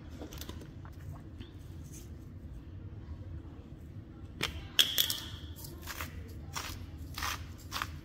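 A spice grinder grinds with quick rasping clicks.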